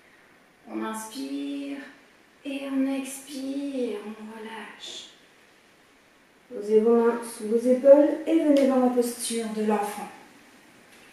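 A woman speaks calmly and clearly close by.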